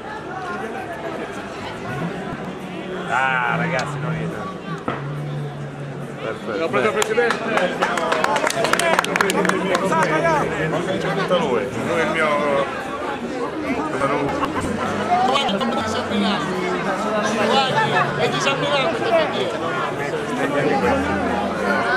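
A crowd of men and women chatters and cheers loudly all around.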